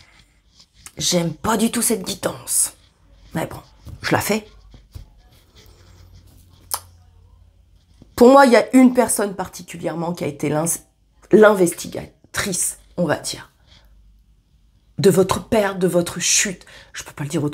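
A woman talks calmly and closely, in pauses.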